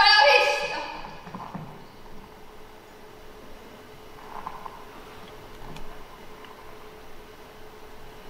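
A woman's high heels click on a wooden floor.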